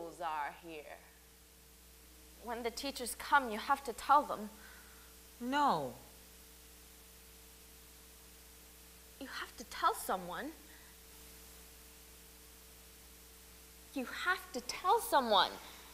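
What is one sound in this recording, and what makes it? A young woman talks with animation through a close microphone.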